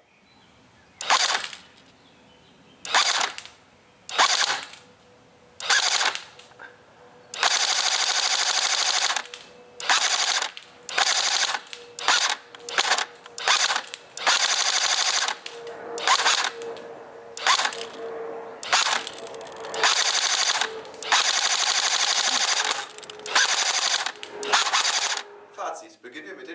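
A machine gun fires loud single shots and long rapid bursts close by, outdoors.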